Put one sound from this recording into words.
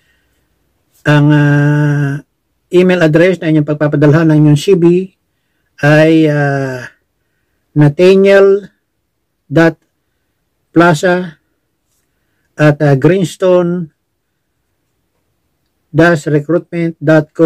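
An elderly man speaks calmly and close up.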